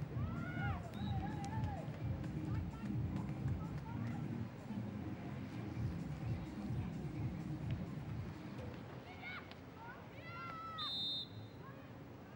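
Young women shout short calls to each other outdoors.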